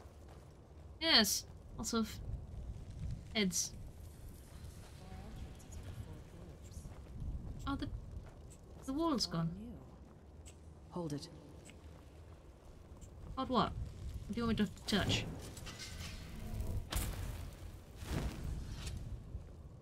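A young woman talks into a close microphone, with lively rising and falling pitch.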